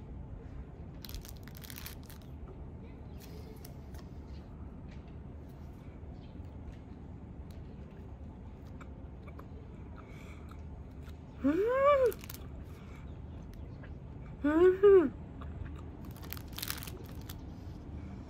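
Plastic film crinkles as a rice ball is unwrapped.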